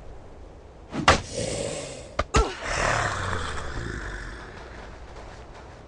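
A zombie growls and snarls nearby.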